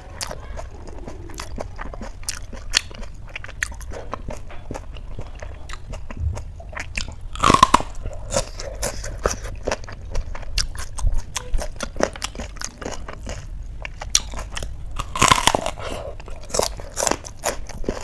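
Fingers squelch through soft, wet food.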